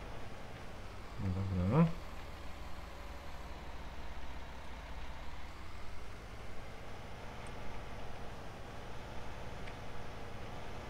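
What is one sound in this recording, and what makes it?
A tractor engine rumbles low and steady.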